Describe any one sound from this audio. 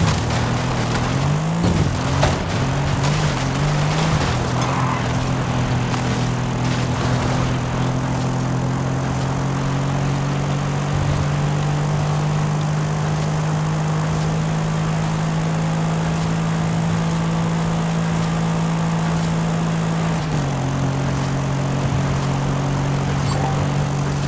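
A sports sedan engine roars at high speed.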